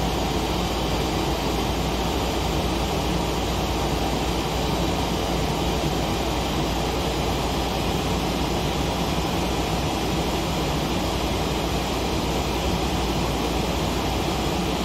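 A jet engine roars steadily, heard from inside the cockpit.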